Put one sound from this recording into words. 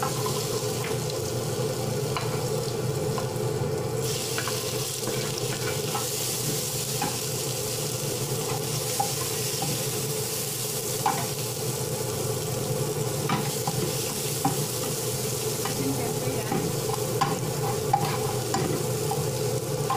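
A metal spatula scrapes and clinks against a pan.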